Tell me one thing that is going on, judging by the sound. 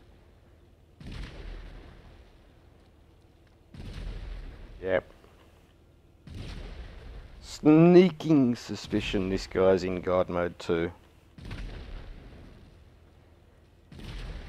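Explosions boom again and again, each with a rushing roar.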